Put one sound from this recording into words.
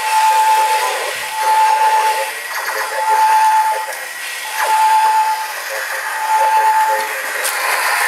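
A toy robot beeps in short repeated tones.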